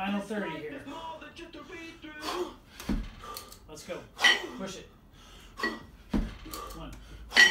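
Kettlebells thud and clank as they swing.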